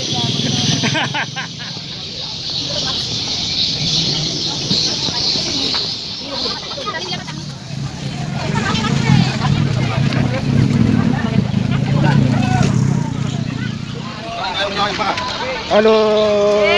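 A busy market crowd murmurs around.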